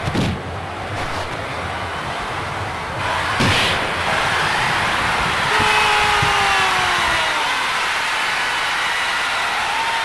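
A stadium crowd roars steadily, growing louder.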